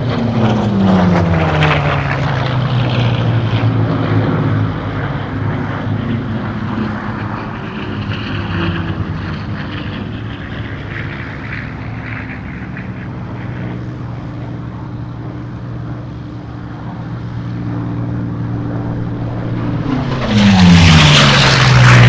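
A propeller plane's engine drones steadily, its pitch shifting as it passes and roars louder near the end.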